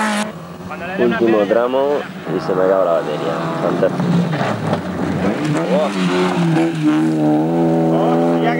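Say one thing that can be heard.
A rally car engine revs hard and changes pitch as it speeds past.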